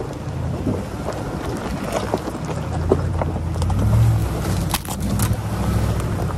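Tyres crunch over rocks.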